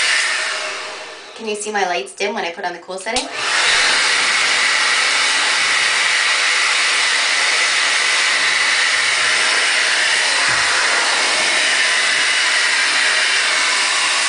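A hair dryer blows with a loud, steady roar.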